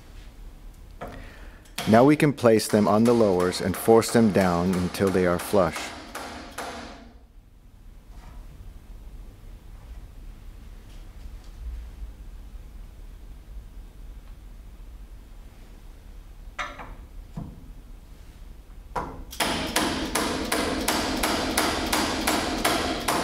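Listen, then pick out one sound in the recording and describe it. A mallet taps repeatedly on metal.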